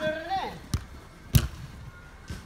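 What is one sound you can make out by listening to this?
A ball is kicked hard with a sharp thud.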